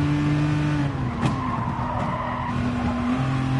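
Tyres squeal through a corner.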